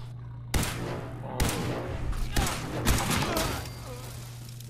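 A laser gun fires a rapid burst of zapping shots.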